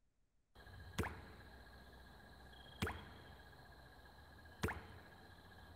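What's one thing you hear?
Soft clicks sound as menu buttons are pressed.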